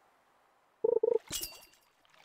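A game chime beeps twice as a fish bites.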